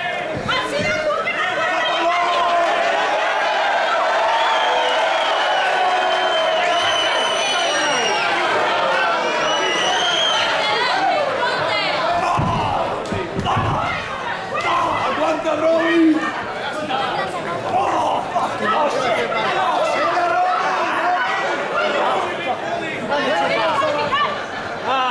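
A crowd of spectators chants and cheers loudly in a large echoing hall.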